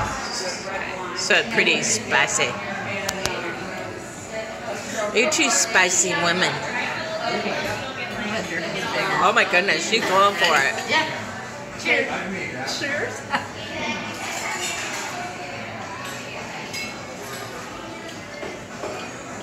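Middle-aged women talk and laugh close by, with animation.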